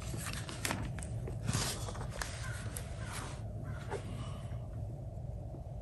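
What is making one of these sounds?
A sheet of paper rustles as it is laid down.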